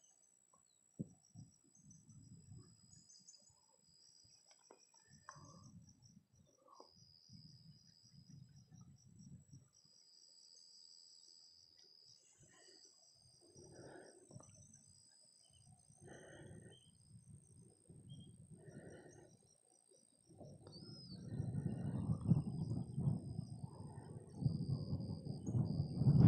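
Wind blows in gusts outdoors, rumbling and buffeting, growing stronger toward the end.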